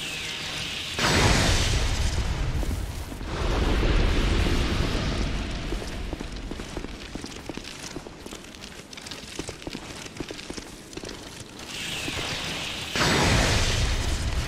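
A lightning bolt crackles and booms.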